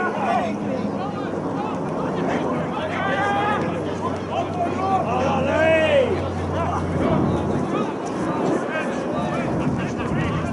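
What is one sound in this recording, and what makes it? Young players shout and call out across an open field outdoors.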